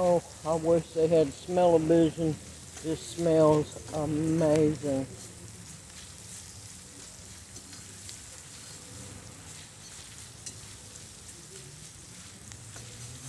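Onions sizzle softly in a frying pan.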